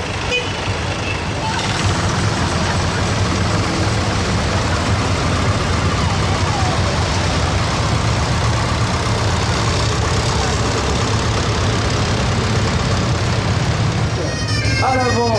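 Old tractor engines chug and rumble as they drive past.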